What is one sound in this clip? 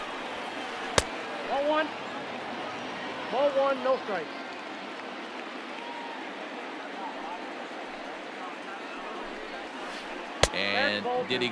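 A baseball pops sharply into a catcher's mitt.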